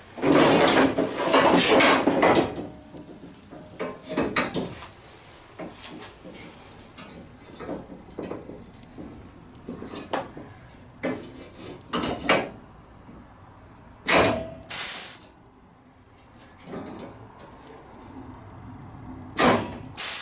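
Compressed air hisses in short, loud bursts from an air blow gun.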